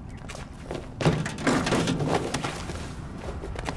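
Footsteps thud on a metal lid.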